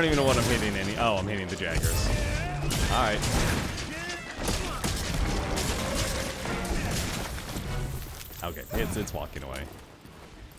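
Blades clash and strike in a fierce fight.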